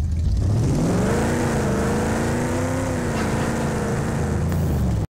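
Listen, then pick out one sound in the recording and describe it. Tyres rumble over a dirt road.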